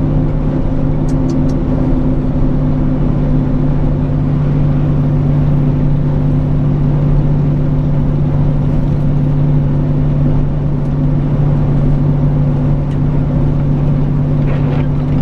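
A truck's diesel engine drones steadily from inside the cab.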